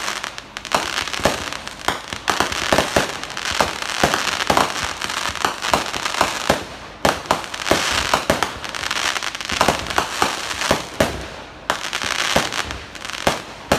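Fireworks crackle and fizzle overhead.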